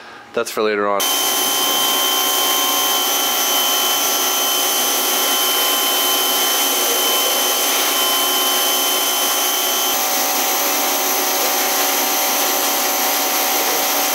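A pressure washer sprays water with a steady loud hiss.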